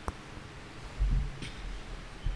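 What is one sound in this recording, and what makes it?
A table is set down on a hard floor with a soft thud.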